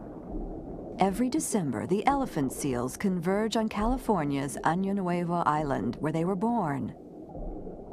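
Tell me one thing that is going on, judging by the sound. Killer whales call underwater with high squeals and whistles.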